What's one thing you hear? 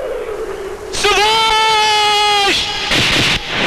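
A man screams loudly as he falls.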